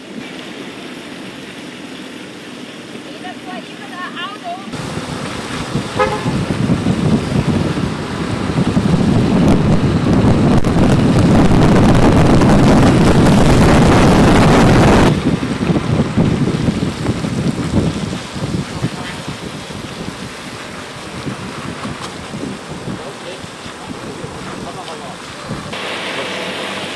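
Bicycle tyres hiss on a wet road.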